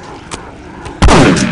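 A gun fires loudly.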